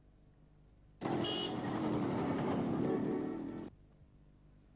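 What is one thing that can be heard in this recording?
Cars and motorbikes drive past on a street.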